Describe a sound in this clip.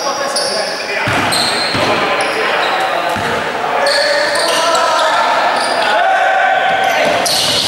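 A basketball bounces on a hard floor, echoing.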